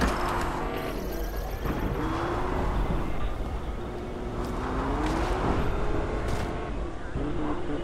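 Quick footsteps clatter across a hard floor.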